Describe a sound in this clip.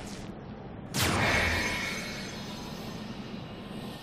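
A magical portal whooshes and shimmers.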